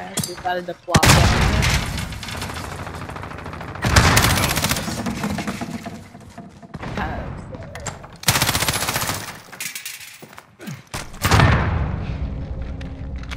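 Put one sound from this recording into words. A rifle fires in rapid bursts, loud and close.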